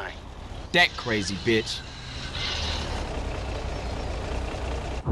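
A van engine idles with a low, steady rumble.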